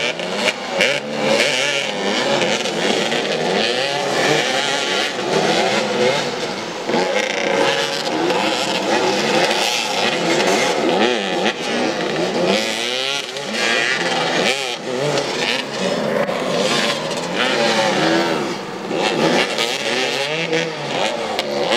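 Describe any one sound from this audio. Several motorcycle engines rev and whine, rising and falling in pitch.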